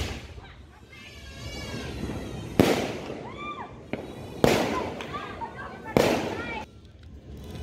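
Fireworks burst with loud bangs and crackle overhead.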